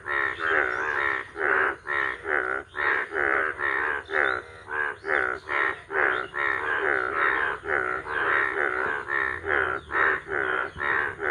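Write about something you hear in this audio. A frog croaks loudly and rapidly in a steady, repeating rhythm.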